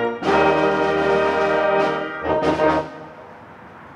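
A brass band plays a loud final chord outdoors.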